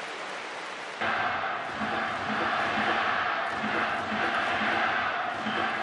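A stadium crowd chants and claps in a rhythm.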